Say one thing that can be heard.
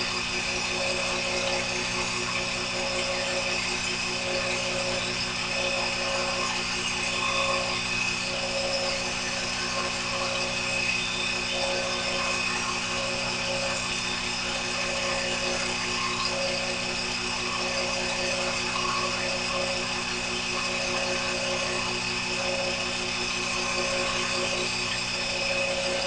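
A small lathe motor hums steadily.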